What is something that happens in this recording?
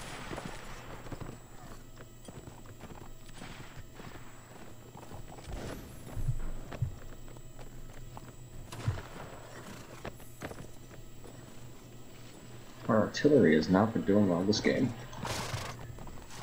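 A horse's hooves thud on grass.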